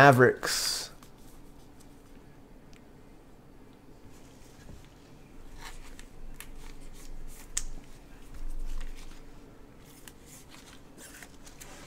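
Trading cards rustle in a plastic sleeve.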